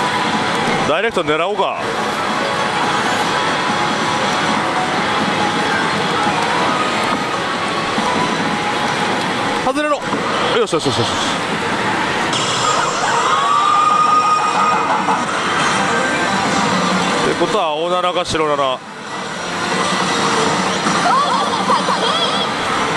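Slot machines chime and jingle amid loud arcade noise.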